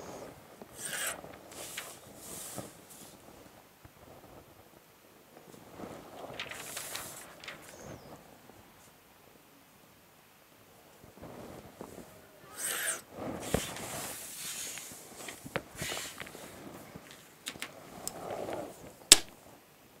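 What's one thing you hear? A pencil scratches along a ruler on paper.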